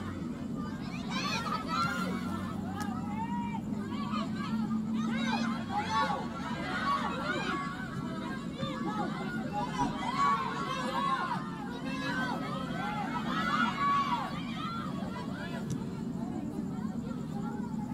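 Young women shout to each other across an outdoor field.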